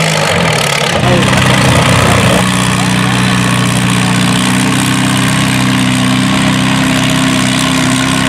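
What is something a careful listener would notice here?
A tractor engine rumbles loudly up close.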